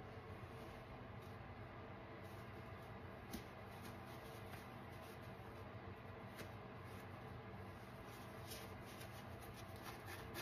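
Hands rub and squeeze a scrub sponge with a soft scratching rustle.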